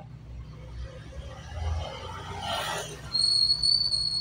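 A motorcycle rides past nearby.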